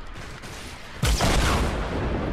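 A loud blast bursts and crackles.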